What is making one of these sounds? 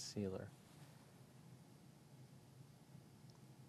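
A makeup brush brushes softly across skin.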